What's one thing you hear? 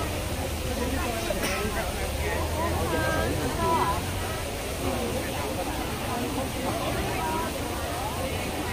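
A crowd of young women chatter close by.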